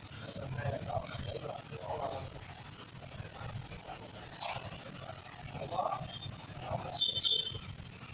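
Metal tools clink against a motorcycle wheel.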